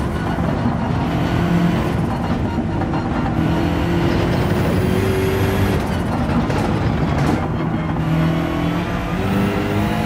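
A racing car engine roars loudly, its pitch rising and falling as the gears shift.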